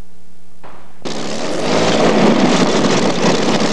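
A powerboat engine roars loudly.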